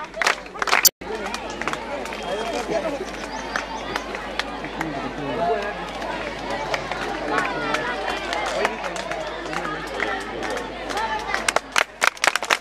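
A crowd of women and girls chatters nearby.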